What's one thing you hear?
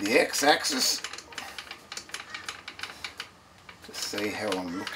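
A metal handwheel clicks and rattles as it is turned.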